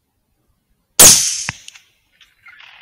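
A rifle shot cracks loudly close by and echoes briefly.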